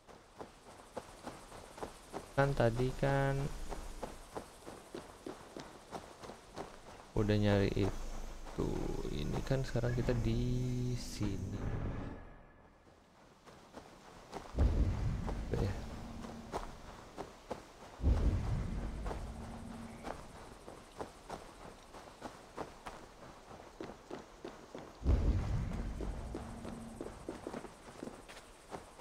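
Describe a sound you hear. Footsteps crunch steadily over leaves and ground.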